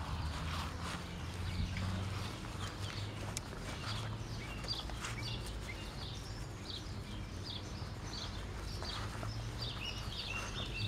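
Puppies scamper over grass with soft rustling.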